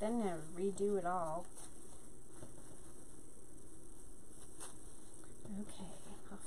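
Mesh ribbon rustles and crinkles under hands.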